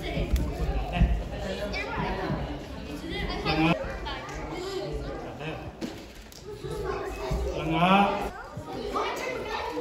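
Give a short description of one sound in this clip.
A young man speaks into a microphone over loudspeakers in a large echoing hall.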